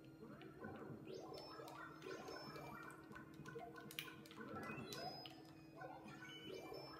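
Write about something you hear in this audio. Game sound effects chirp and blip.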